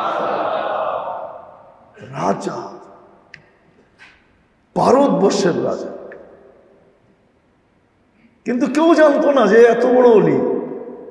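An elderly man speaks calmly through a microphone in an echoing room.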